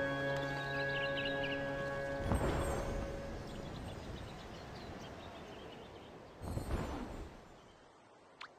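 A flock of birds flutters past with a rush of wings.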